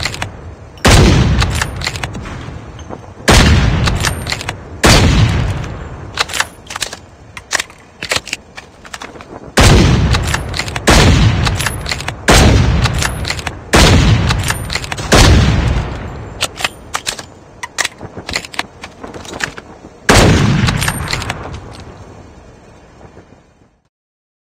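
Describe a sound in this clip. Loud sniper rifle shots boom and echo away.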